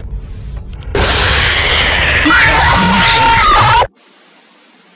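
A loud, harsh screech blares.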